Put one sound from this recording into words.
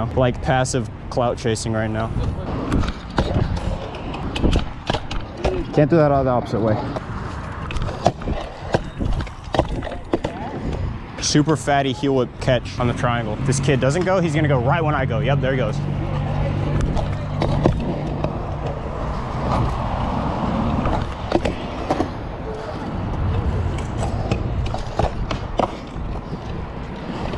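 Scooter wheels roll and rumble over concrete.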